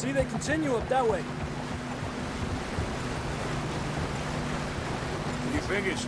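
Horses splash through a shallow stream.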